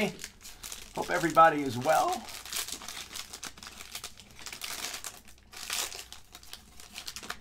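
A foil pack tears open.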